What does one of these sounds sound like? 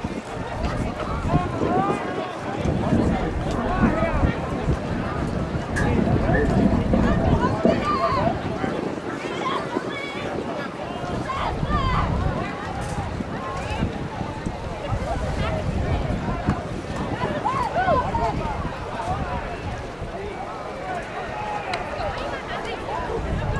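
A crowd of men and women chatters nearby outdoors.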